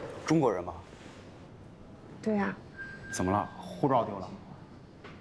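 A man speaks with surprise, close by.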